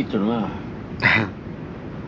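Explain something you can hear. An elderly man sips loudly from a cup.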